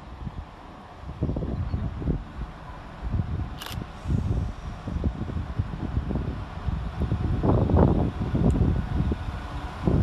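A diesel train rumbles as it approaches along the track.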